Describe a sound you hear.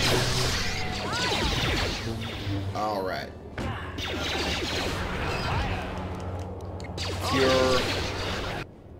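Creatures roar and growl.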